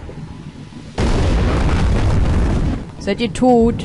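A loud fiery blast roars.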